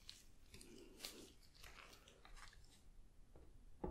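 Plastic wrap crinkles close by.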